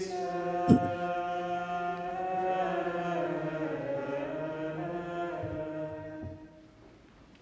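A man chants slowly through a microphone in an echoing room.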